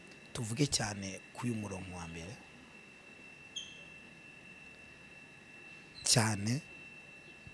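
A man speaks calmly and close into a microphone, with pauses.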